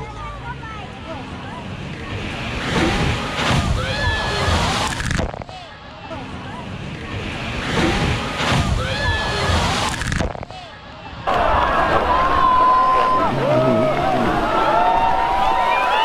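A crowd of people outdoors shout and cheer.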